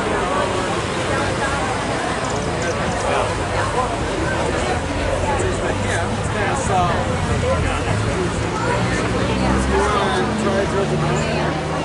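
A fiddle plays a lively tune.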